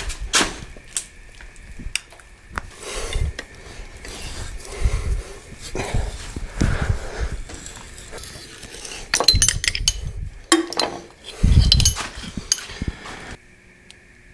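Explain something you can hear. A ratchet wrench clicks and clanks against metal.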